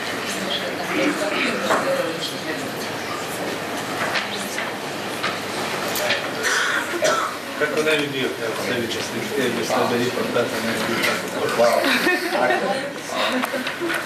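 A crowd of people murmurs and chatters nearby in a room.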